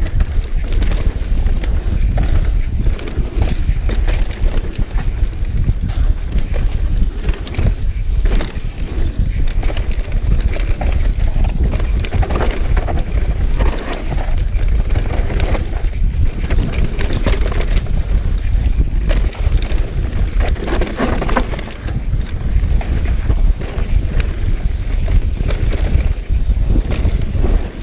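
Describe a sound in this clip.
Bicycle tyres rumble and crunch over a bumpy dirt trail.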